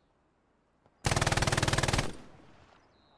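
A machine gun fires a short rapid burst.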